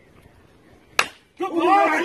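A metal bat cracks sharply against a ball.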